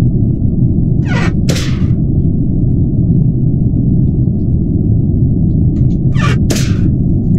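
A metal hatch slides open and shut with a quick whoosh.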